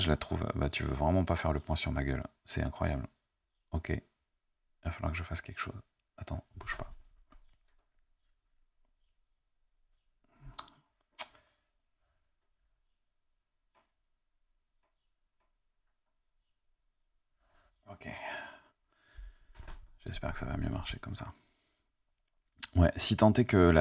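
A man speaks calmly and up close into a microphone.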